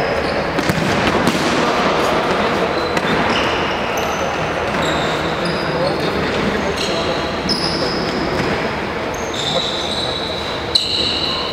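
A ball thuds off a player's foot now and then.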